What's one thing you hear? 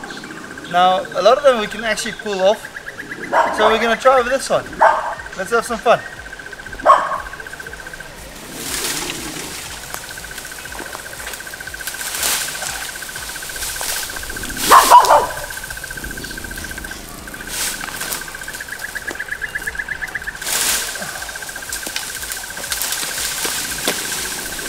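Leaves and vines rustle as a hanging vine is tugged.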